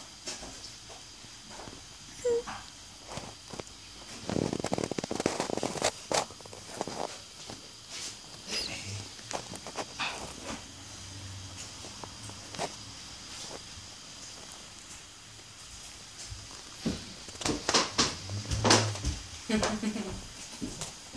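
Kittens shift and rustle against a creaking leather cushion.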